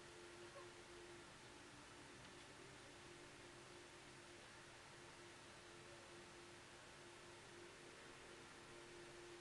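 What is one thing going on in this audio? A brush softly dabs and scrapes on paper.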